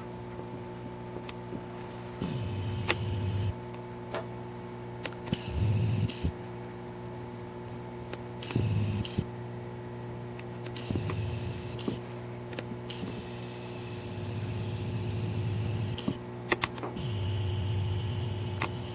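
A pinball machine hums steadily.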